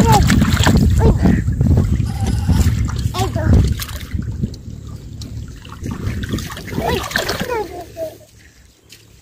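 Water splashes and sloshes as a child scoops and wades in a shallow puddle.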